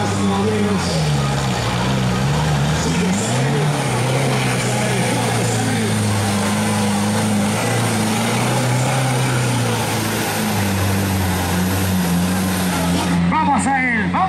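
A truck engine roars and revs loudly.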